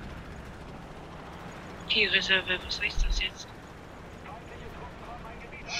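A tank engine rumbles low and steady.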